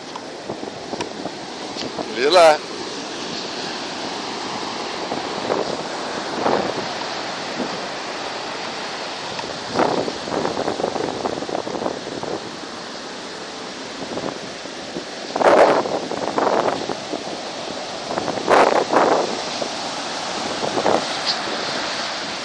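Ocean waves wash and roar steadily onto a beach.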